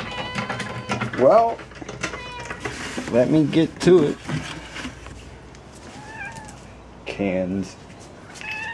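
Cats meow loudly nearby.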